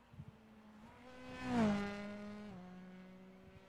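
A race car roars past, its engine pitch dropping quickly.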